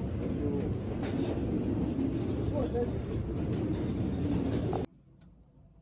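A busy indoor space hums and murmurs.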